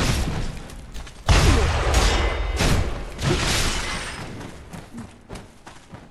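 Heavy sword blows clash and thud.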